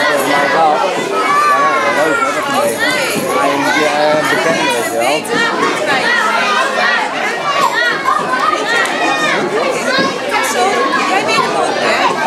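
A woman talks animatedly to the children nearby.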